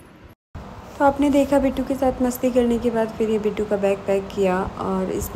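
A woman sings close by.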